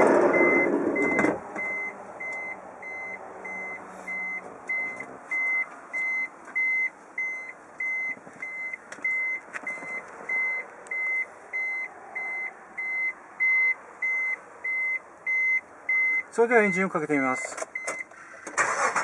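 A car's warning chime beeps at a steady, even pace.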